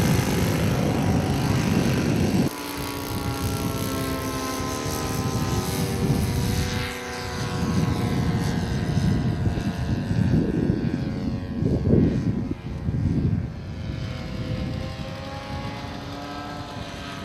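A small model airplane engine buzzes loudly, its pitch rising and falling as it passes.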